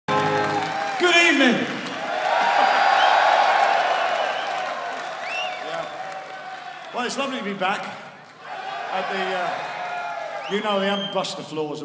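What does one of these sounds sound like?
An electric guitar plays loudly through an amplifier.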